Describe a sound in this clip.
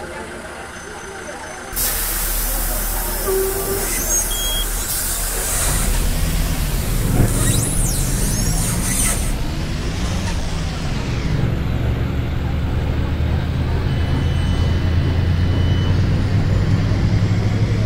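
A bus engine idles and then revs up as the bus pulls away.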